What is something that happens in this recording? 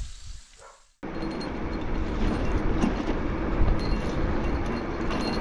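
Bicycle tyres crunch on a gravel road.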